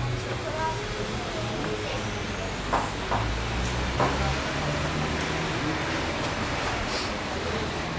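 Customers murmur indoors.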